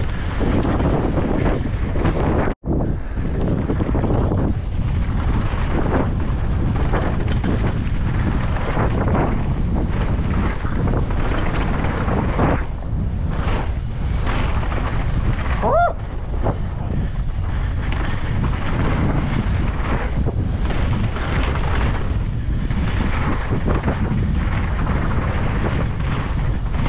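A bicycle rattles over bumps in the trail.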